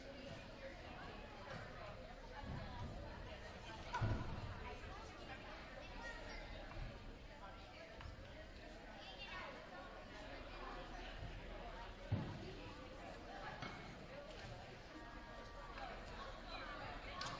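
Young women chatter and talk together in a large echoing hall.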